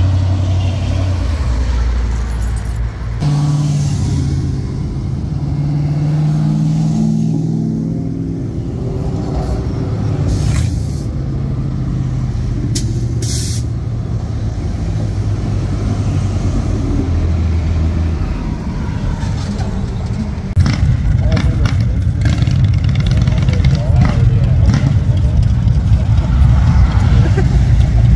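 Car engines rumble as vehicles drive slowly past.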